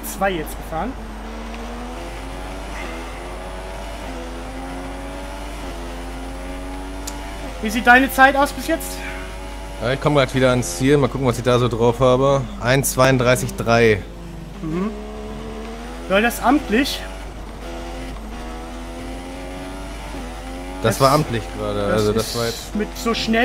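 A racing car engine whines at high revs, rising through the gears and dropping as it brakes.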